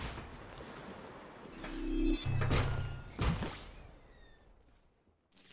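A crash and rumble of breaking parts fades away.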